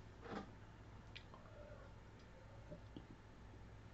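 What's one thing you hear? A young man gulps a drink.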